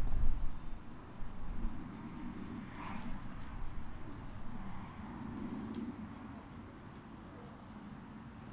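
A tool clicks and scrapes against a car wheel.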